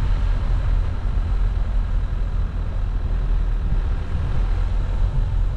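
A vehicle's engine rumbles low and steady as it drives slowly along a bumpy dirt track.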